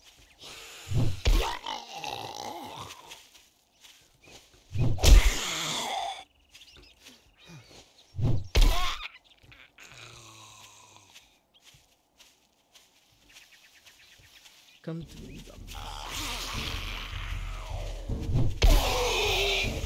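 A heavy hammer thuds hard into a body, several times.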